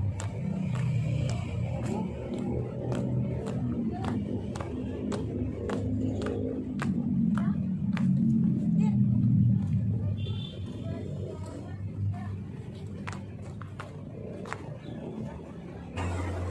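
Shoes tap on a hard court as a small group marches in step.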